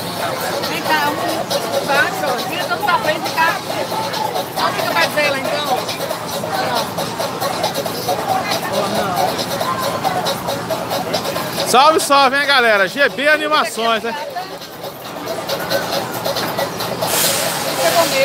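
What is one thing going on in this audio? People chatter outdoors in the background.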